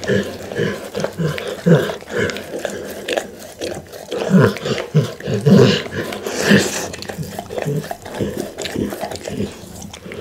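A pit bull laps and slurps from a glass bowl close to a microphone.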